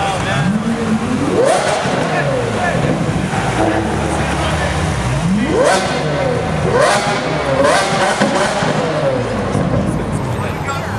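A crowd of people murmurs nearby.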